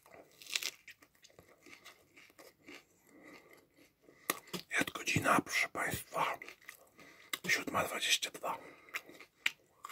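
Lettuce crunches as a young man bites into a sandwich.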